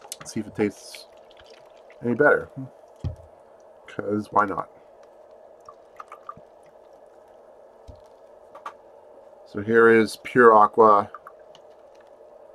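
Water pours from a plastic bottle into a cup.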